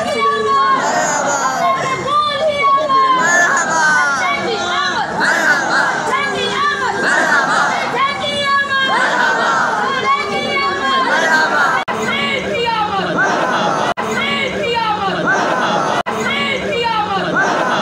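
A man chants loudly in a strong, ringing voice.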